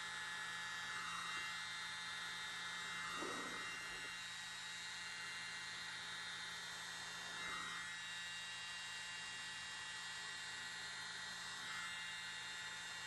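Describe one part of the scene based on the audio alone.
A small spray bottle puffs short bursts of air.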